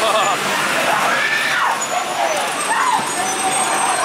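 A man in costume growls and shouts close by.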